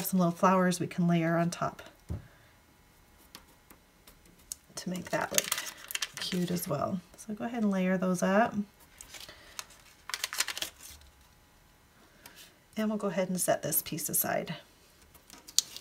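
Paper rustles softly as it is pressed and smoothed down.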